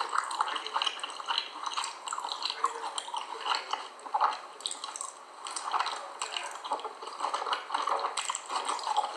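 A woman chews cornstarch close to a microphone, with soft squeaky crunching.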